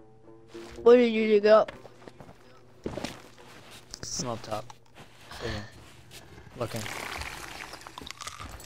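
Footsteps tread over rough ground.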